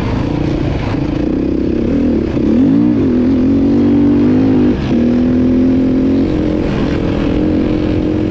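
A motorbike engine roars loudly close by, revving up and down as it rides.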